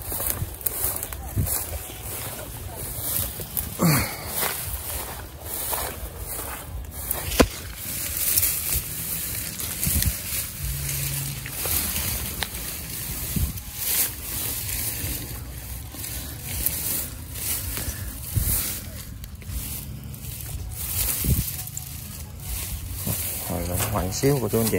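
Leaves and dry grass rustle and crackle as plants are pushed aside close by.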